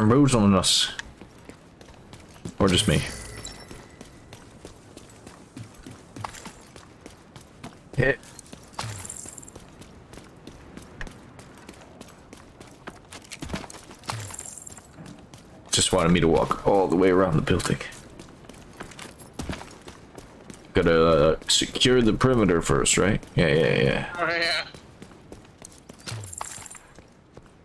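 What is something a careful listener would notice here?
Footsteps run over hard pavement.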